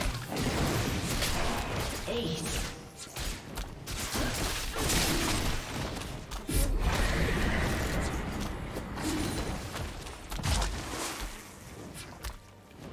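Game spell effects whoosh, crackle and boom in quick bursts.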